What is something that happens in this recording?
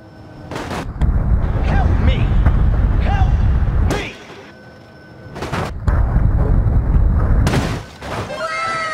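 A car roars up a ramp and crashes hard onto the road.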